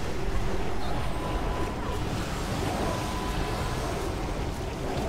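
Game spell effects crackle and whoosh in a steady rush of battle noise.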